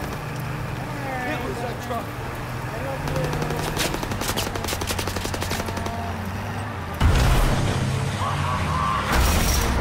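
A vehicle engine rumbles steadily while driving.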